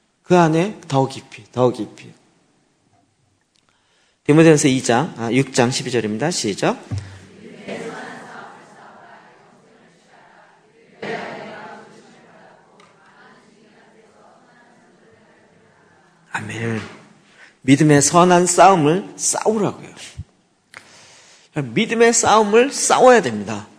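A middle-aged man speaks calmly and with emphasis into a microphone, with pauses between phrases.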